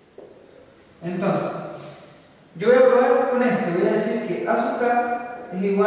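A young man speaks calmly nearby, explaining.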